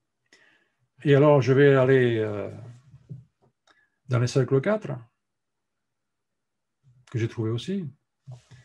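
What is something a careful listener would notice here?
An elderly man speaks calmly through an online call microphone, in short bursts with pauses.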